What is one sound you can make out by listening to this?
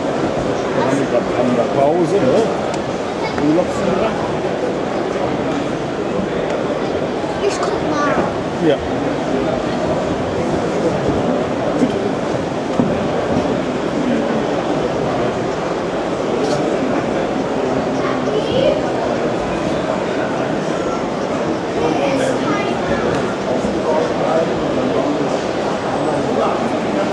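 A model train rumbles steadily along its track.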